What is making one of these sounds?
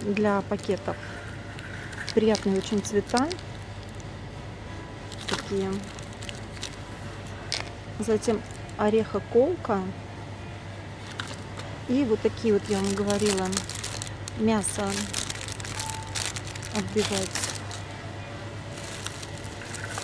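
A plastic package rustles and crinkles in a hand.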